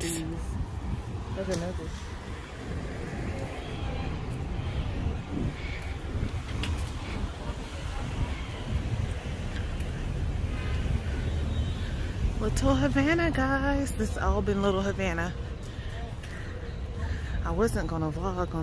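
Wind rustles through palm leaves outdoors.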